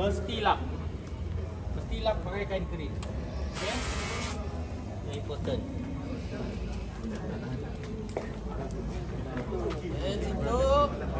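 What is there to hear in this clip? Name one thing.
A cloth rubs and wipes a bicycle frame.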